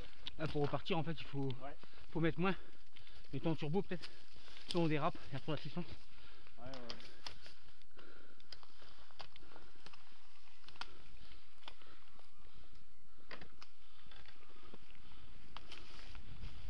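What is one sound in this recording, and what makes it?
Bicycle tyres roll and rattle over a bumpy dirt trail.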